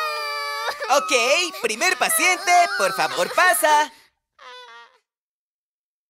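Young children cry and wail loudly.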